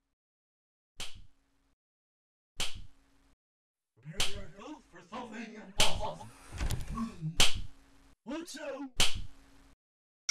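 A sharp slap cracks again and again at a steady pace.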